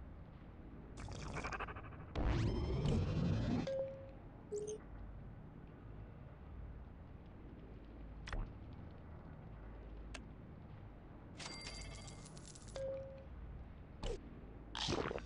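Game menu sounds chime and whoosh as panels open and close.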